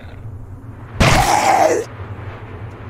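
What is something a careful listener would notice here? A creature growls in pain.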